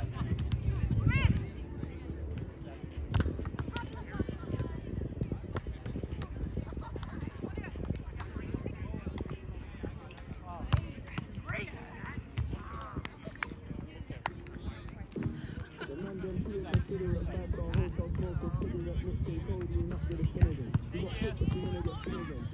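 A volleyball is struck with sharp thumps in the distance.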